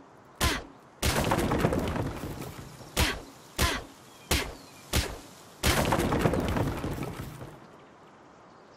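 Wood creaks and crackles loudly as a wall breaks apart.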